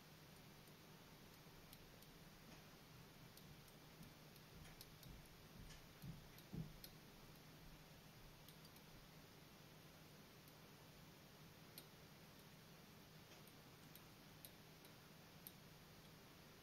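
Thread ticks and rasps softly as it is wound tightly around a small hook.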